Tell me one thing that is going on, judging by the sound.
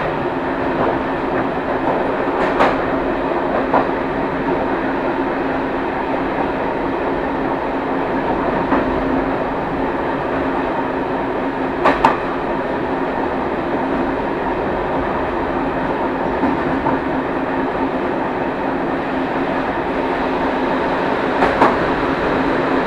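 A train engine rumbles steadily from inside a moving cab.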